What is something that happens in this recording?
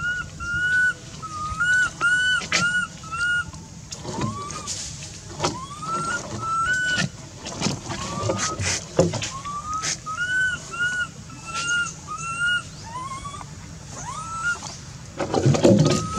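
A baby monkey squeaks in short, high, rising chirps again and again.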